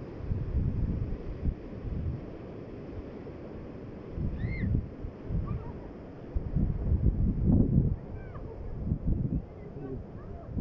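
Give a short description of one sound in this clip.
Wind gusts buffet the microphone outdoors with a low rumble.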